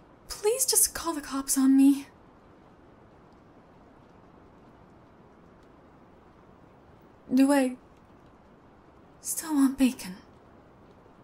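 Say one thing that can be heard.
A young woman speaks softly, close to a microphone.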